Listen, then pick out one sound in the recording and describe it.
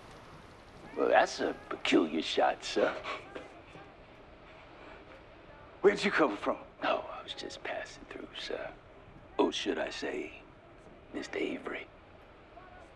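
A man speaks in short, emphatic phrases.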